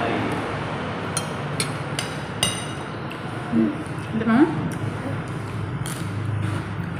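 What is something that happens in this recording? A spoon clinks against a plate.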